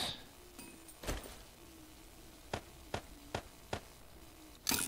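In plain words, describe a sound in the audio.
Short interface clicks sound as items are moved in a game menu.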